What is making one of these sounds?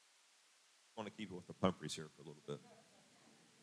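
A woman speaks briefly.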